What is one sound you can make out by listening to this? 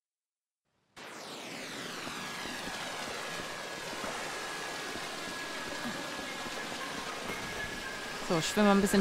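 A game character splashes through shallow water.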